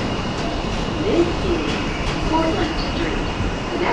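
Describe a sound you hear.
Metal wheels squeal on the rails.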